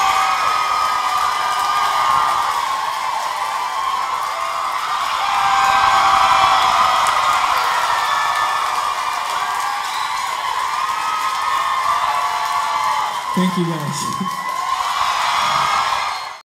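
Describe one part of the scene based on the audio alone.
A large crowd cheers and screams loudly in an echoing hall.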